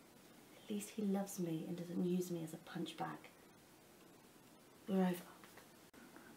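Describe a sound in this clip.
A woman speaks quietly up close.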